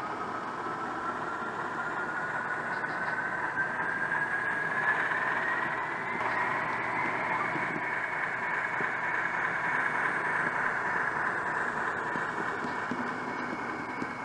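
A small model train motor whirs steadily as the train rolls along the tracks, its whine slowly rising in pitch.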